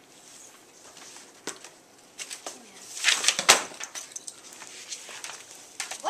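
Books thump and slap as they are dropped and stacked.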